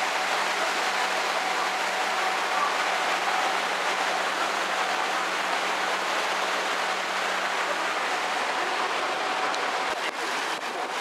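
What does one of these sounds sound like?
A boat engine hums steadily nearby.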